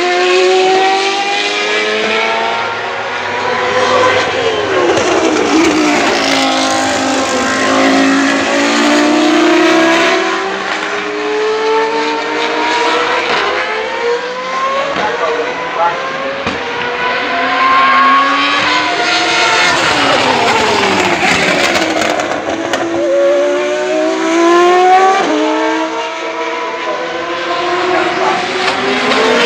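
Loud racing car engines scream past again and again, rising and falling in pitch.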